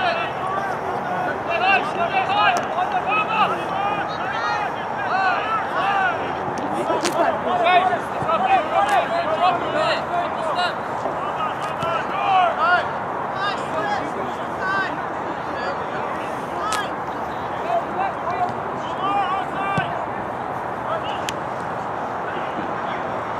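Spectators chatter and cheer in the distance.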